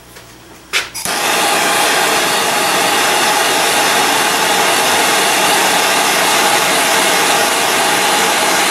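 A gas torch roars with a steady hiss.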